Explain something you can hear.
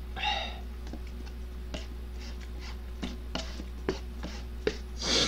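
A young man slurps noodles loudly close to a microphone.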